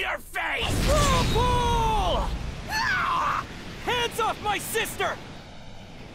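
A young man shouts urgently.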